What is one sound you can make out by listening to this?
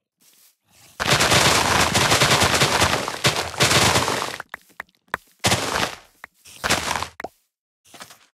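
Leaves and wood crunch and break in quick bursts.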